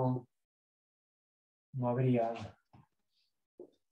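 A man speaks calmly, close by, in short phrases.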